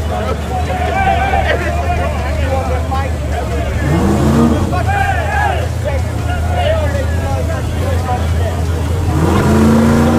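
A crowd of men and women chatter loudly all around, outdoors.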